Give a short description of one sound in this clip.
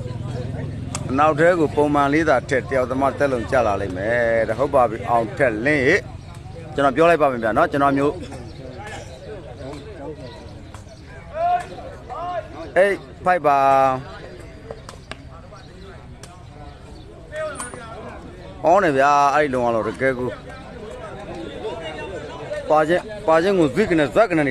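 Men in a nearby outdoor crowd shout and call out excitedly.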